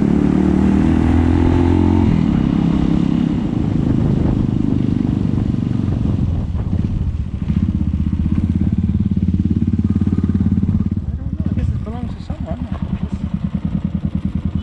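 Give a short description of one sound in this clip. A motorcycle engine rumbles and throbs steadily.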